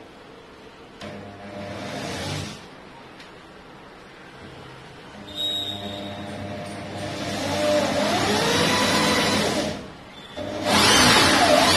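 An electric drill whirs loudly in bursts as it bores into wood overhead.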